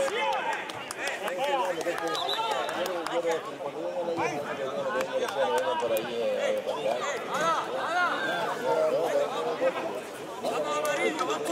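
Young men shout and call out to each other outdoors, some way off.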